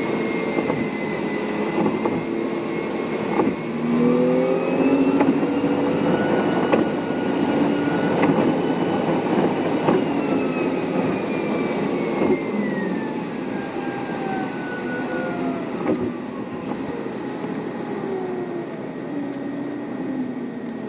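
Tyres roar steadily on a road.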